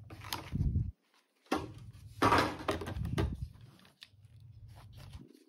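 A plastic doll clicks and rustles as hands move its limbs.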